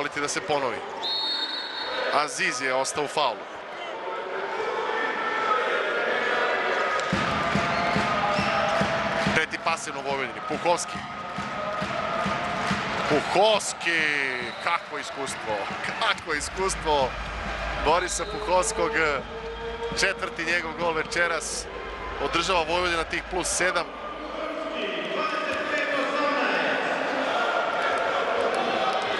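A large crowd cheers and chants in an echoing hall.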